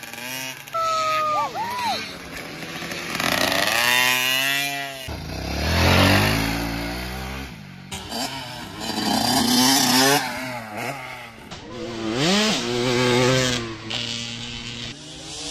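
A dirt bike engine revs loudly, rising and falling as it accelerates.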